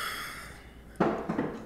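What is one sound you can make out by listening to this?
A wooden chair scrapes across the floor.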